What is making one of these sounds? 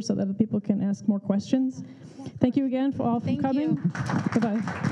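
A woman speaks into a microphone over loudspeakers in a hall.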